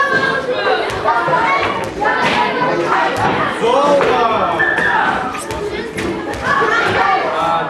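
A ball clicks sharply off a table and paddles.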